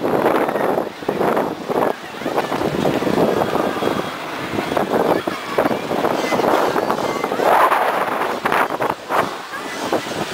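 Wind rushes loudly over the microphone in gusts.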